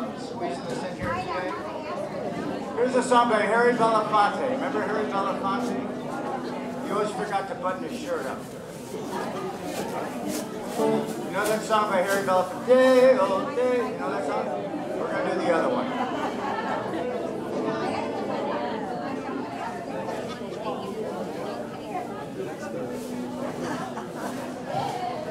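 People chatter in a crowd nearby.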